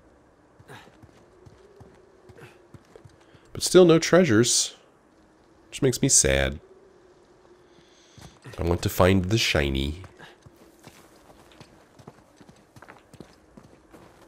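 Footsteps crunch on stone and snow.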